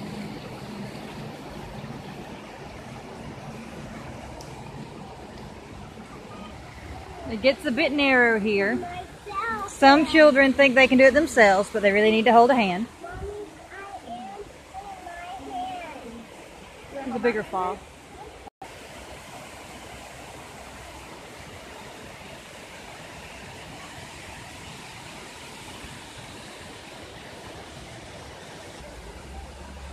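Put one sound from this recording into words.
Water trickles and splashes over rocks nearby.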